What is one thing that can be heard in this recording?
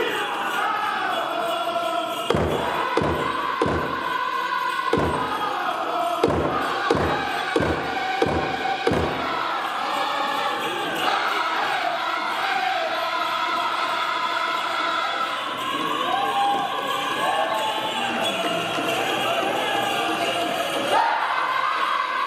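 Bells on a dancer's outfit jingle with each step.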